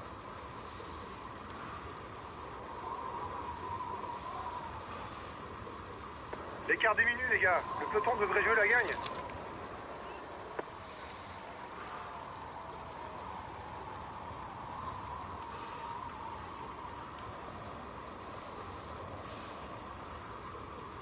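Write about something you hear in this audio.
A racing bicycle whirs steadily along a road.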